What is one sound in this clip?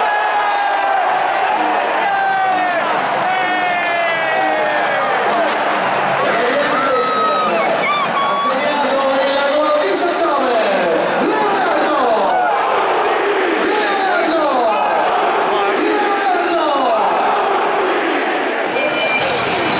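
A large stadium crowd sings and chants loudly, close by.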